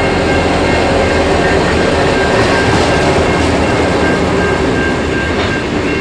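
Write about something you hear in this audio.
Diesel locomotives rumble loudly as they pass close by.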